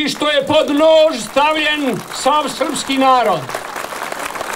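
An elderly man speaks loudly and forcefully through a microphone and loudspeakers.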